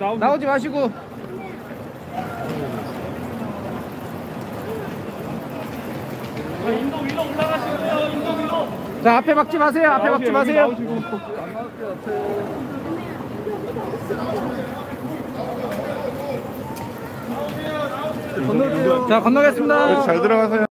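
A crowd of people chatters and calls out nearby in a large echoing hall.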